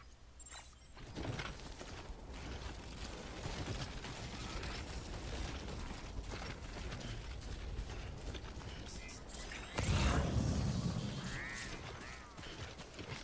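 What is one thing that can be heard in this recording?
Footsteps crunch over grass and stones.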